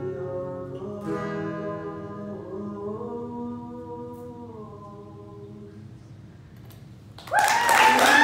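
A young woman sings through a microphone.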